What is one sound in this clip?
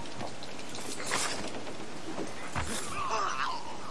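Blows land with heavy thuds in a brief scuffle.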